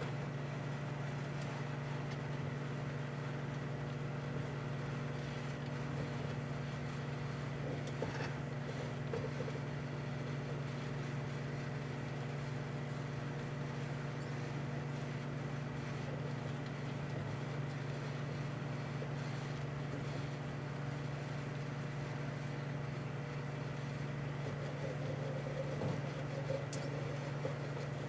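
Food crackles and pops inside a microwave oven.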